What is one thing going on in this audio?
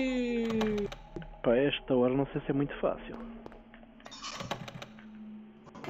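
A door handle rattles against a jammed lock.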